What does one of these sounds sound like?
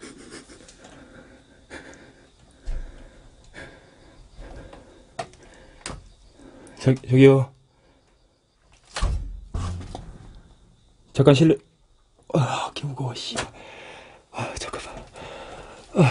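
A metal doorknob rattles and clicks as a hand turns and tugs at it.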